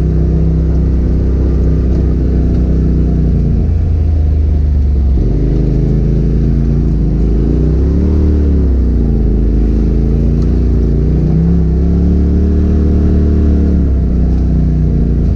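Tyres crunch over a muddy dirt track.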